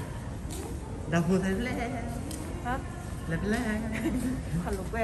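A woman speaks close by, calmly.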